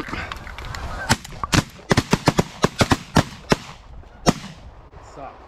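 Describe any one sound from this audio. Shotguns fire several sharp, quick blasts close by.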